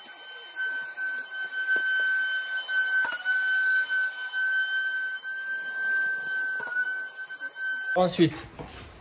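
A vacuum extractor whines steadily.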